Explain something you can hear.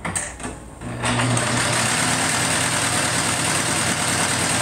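A sewing machine whirs steadily.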